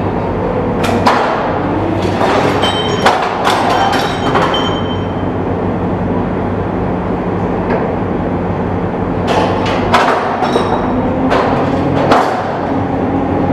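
Steel tracks clank on a metal deck.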